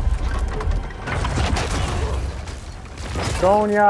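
Heavy stone rubble crashes and tumbles down.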